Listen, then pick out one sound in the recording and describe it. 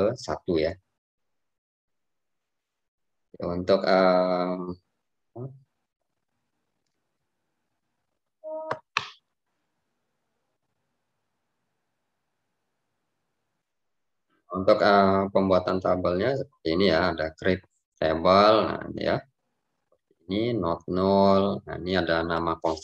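A young man speaks calmly into a microphone, with pauses.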